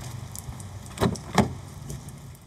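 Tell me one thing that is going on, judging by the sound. A car door handle clicks and the door opens.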